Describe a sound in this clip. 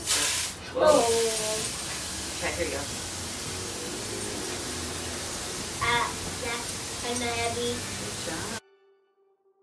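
Water sprays from a hose with a steady hiss.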